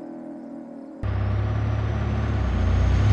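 A heavy truck engine rumbles low and steady.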